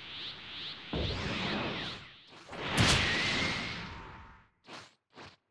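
A powerful beam attack roars loudly and then fades.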